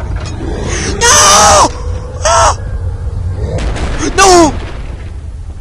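A man yells loudly into a microphone.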